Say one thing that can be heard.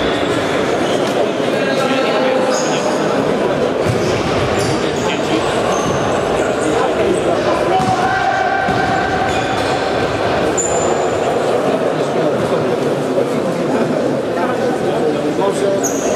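Players' footsteps patter across a hard floor in a large echoing hall.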